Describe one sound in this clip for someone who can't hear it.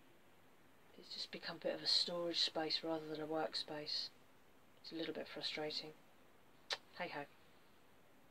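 A woman talks calmly close to the microphone.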